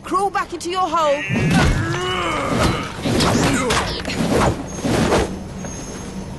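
Energy blasts whoosh and crackle during a fight.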